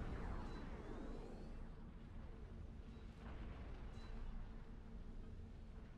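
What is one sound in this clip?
Laser weapons fire in short electronic zaps.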